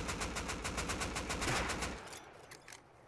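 Rapid gunfire rattles loudly, then stops.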